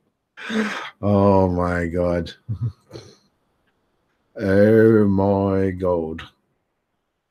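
A middle-aged man speaks calmly over a microphone.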